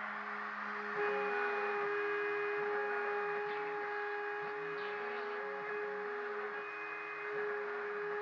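A router bit cuts into chipboard with a grinding rasp.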